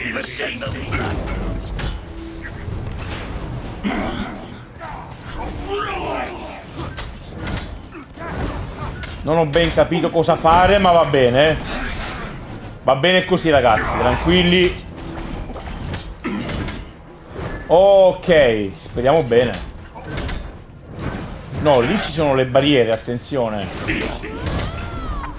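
Energy blasts crackle and thud in a fight.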